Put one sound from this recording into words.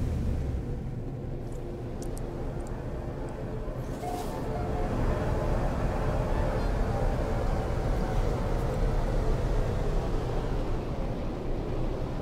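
A spaceship's engine hums steadily as it cruises.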